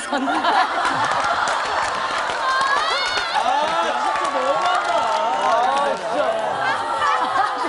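Several people laugh together.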